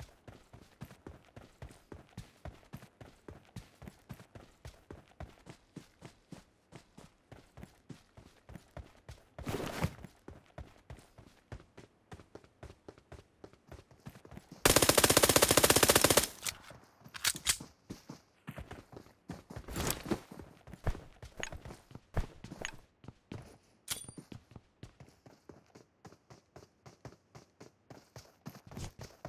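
Footsteps patter quickly and steadily.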